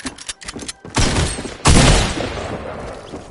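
A shotgun fires two loud blasts.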